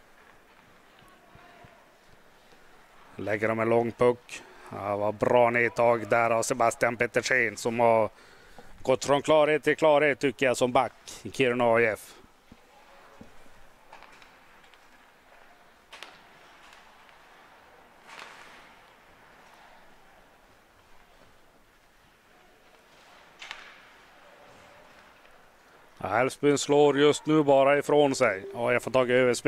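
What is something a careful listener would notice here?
Ice skates scrape and hiss on the ice.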